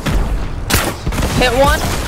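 A gun fires in sharp shots.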